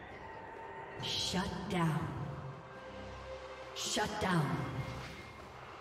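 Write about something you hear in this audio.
Short bursts of game spell effects whoosh and ring out.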